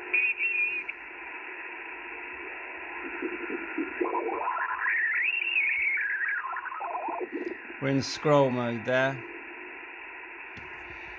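A radio's loudspeaker hisses with steady static.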